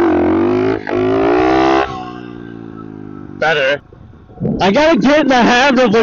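A small motorbike engine revs loudly in bursts, rising and falling in pitch.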